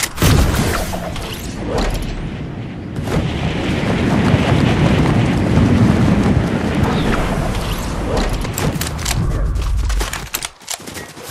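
Wind rushes loudly during a fast glide through the air.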